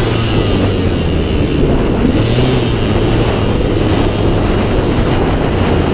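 A dirt bike engine roars steadily up close.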